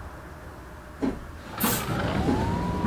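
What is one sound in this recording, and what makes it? A bus door thumps shut.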